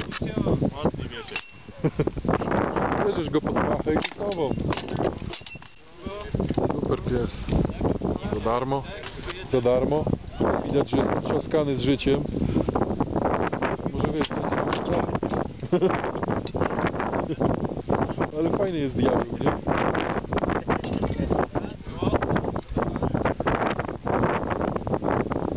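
Wooden weapons knock against shields in sharp clacks.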